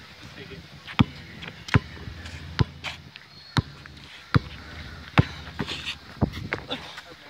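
A basketball bounces on hard pavement.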